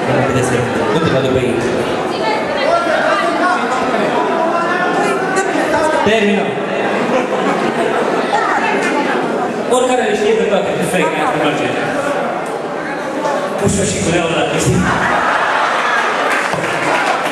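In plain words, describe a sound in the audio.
A middle-aged man speaks with animation into a microphone over loudspeakers.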